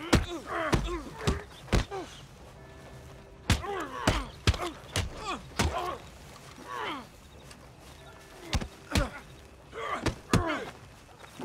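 Fists thud hard against bodies in a brawl.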